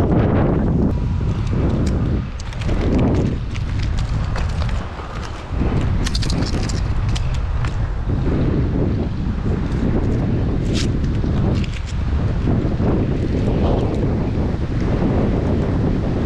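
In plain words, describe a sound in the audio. Wind rumbles and buffets loudly high outdoors.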